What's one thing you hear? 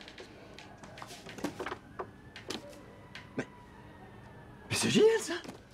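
Paper rustles in a young man's hands.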